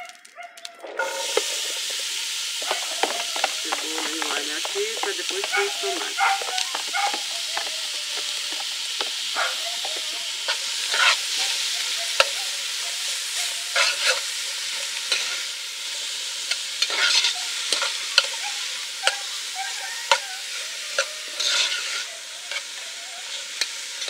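Oil sizzles steadily in a pan.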